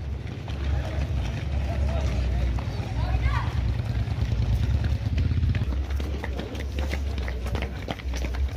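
Many footsteps patter quickly on a paved road.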